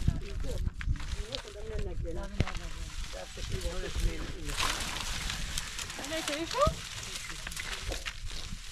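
Wooden poles rattle and clatter as they are handled.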